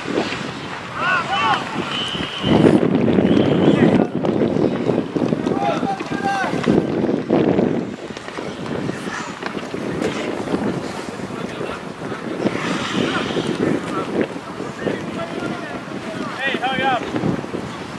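Players call out to each other across an open ice rink in the distance.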